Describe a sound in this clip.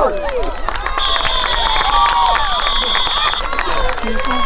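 A referee's whistle blows one long blast.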